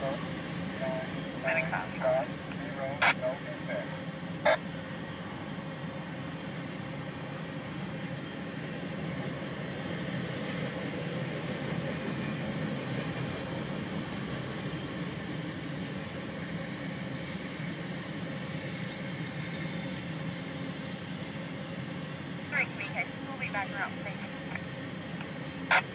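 A freight train rumbles past steadily on the tracks.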